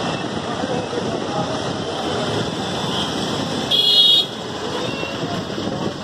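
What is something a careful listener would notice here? A bus engine idles and rumbles close by.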